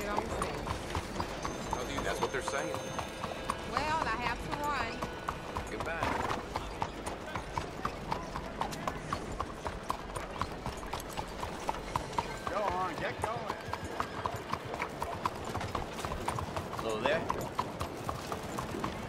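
A horse's hooves clop steadily on a stone street.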